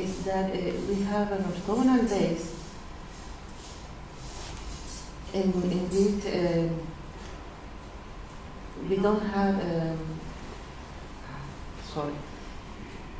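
A middle-aged woman speaks calmly in short phrases.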